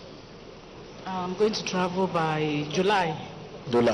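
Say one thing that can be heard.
A woman speaks emotionally into a microphone, heard over loudspeakers.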